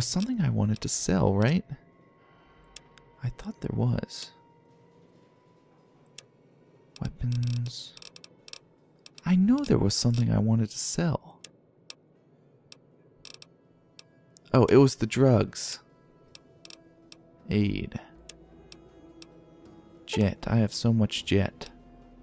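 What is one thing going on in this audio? Soft interface clicks tick now and then as menu items change.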